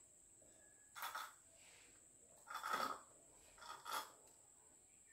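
A woman and a young girl slurp a drink through straws.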